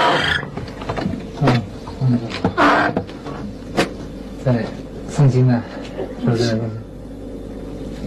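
A man speaks quietly nearby.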